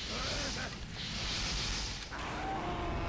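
Flames roar and hiss in a burst of fire.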